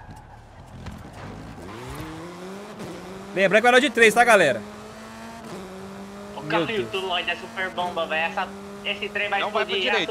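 A car engine revs up and accelerates through the gears.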